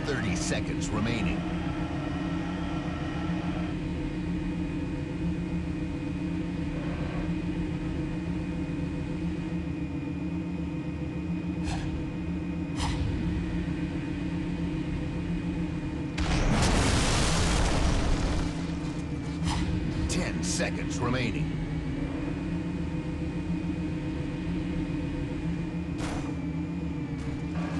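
A game aircraft's engine hums steadily.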